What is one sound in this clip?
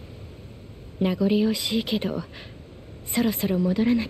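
A young woman speaks softly and calmly.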